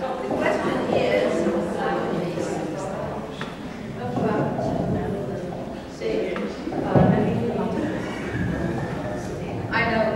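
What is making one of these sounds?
A woman speaks through a microphone and loudspeaker in a reverberant room.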